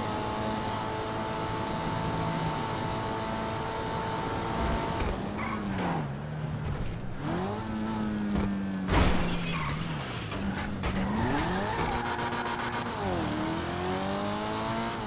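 A car engine revs up and down as the car speeds along.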